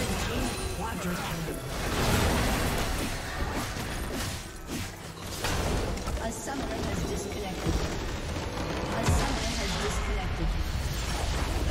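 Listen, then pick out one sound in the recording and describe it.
Game spell effects and combat sounds crash and clash loudly.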